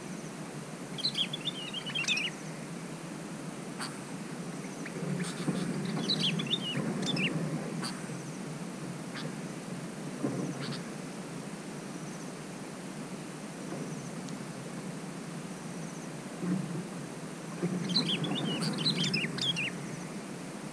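Small birds chirp and twitter in short bursts outdoors.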